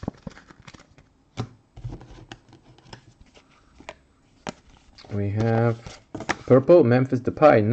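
Trading cards rustle and click as they are handled and shuffled.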